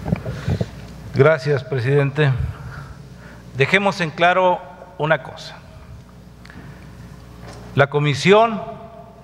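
A man speaks with animation into a microphone, in a large echoing hall.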